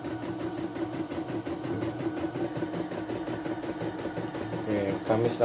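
An embroidery machine stitches with a fast, steady whirring rattle.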